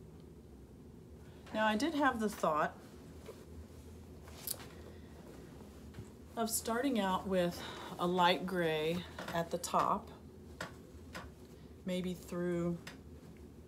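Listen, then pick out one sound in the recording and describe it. A blanket rustles as it is handled.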